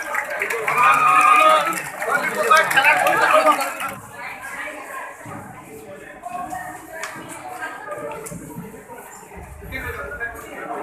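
A crowd of men talks and calls out loudly close by.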